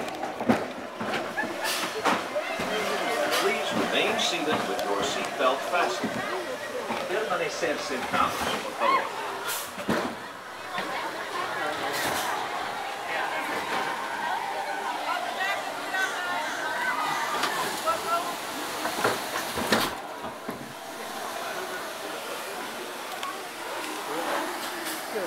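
Several people talk nearby.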